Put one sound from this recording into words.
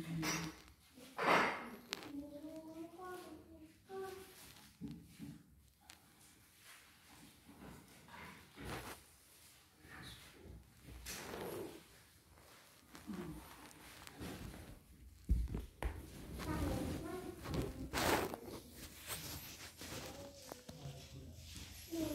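A woman recites softly in prayer, close by.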